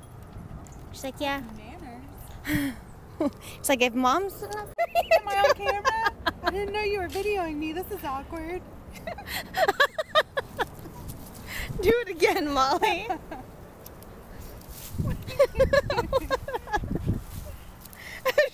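A woman talks to a dog in a lively, sing-song voice close by.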